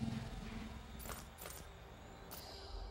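Interface menu beeps click softly.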